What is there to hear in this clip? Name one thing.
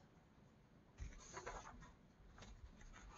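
A paper page is turned with a soft rustle.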